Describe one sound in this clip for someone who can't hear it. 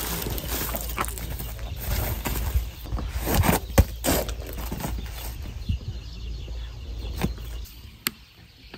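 A plastic mat rustles and flaps as it is unrolled.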